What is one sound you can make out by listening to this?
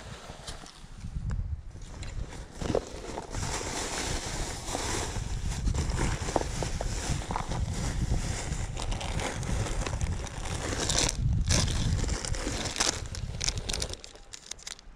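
Boots crunch on dry dirt with each step.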